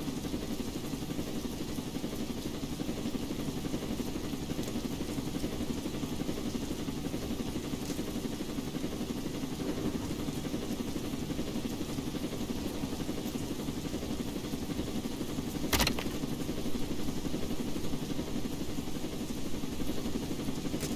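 A helicopter's rotor whirs and chops steadily.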